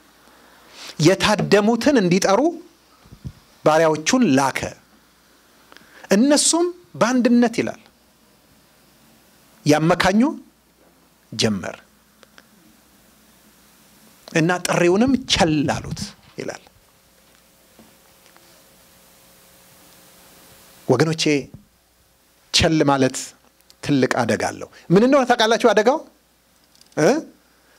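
A man preaches with animation into a microphone, in short bursts separated by pauses.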